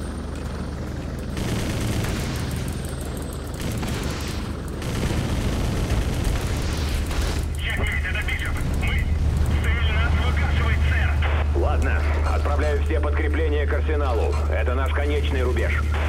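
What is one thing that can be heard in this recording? A helicopter's rotor drones steadily overhead.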